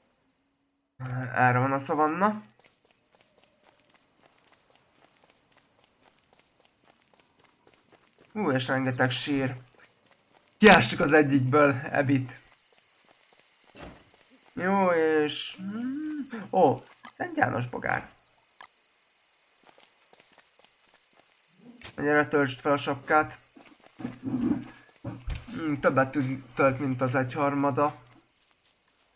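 A man talks calmly and close to a microphone, in bursts with pauses.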